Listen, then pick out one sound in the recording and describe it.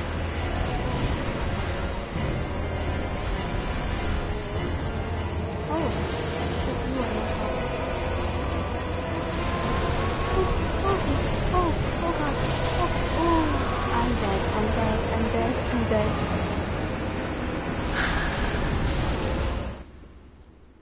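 A huge creature roars and rumbles loudly.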